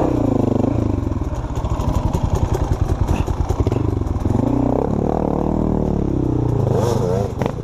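Another dirt bike engine growls as it climbs toward the listener.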